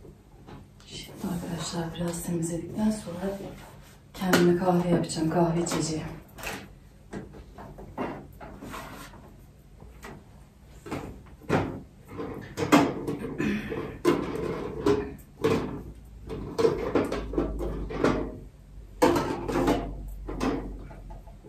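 A middle-aged woman talks calmly nearby in a room.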